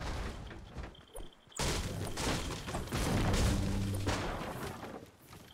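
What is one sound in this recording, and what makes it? A pickaxe strikes a wooden crate repeatedly.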